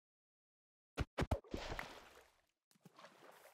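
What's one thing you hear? Wood knocks sharply as a small boat is broken.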